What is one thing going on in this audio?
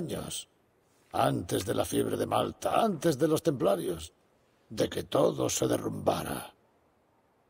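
An older man speaks in a low, grave voice.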